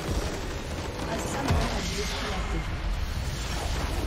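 A structure crumbles and explodes with a loud blast.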